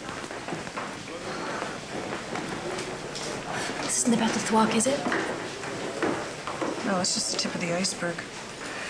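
Many voices murmur in a busy room.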